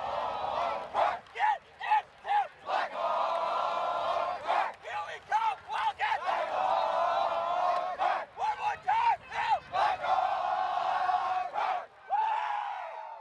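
A crowd of young men chant in loud rhythmic bursts.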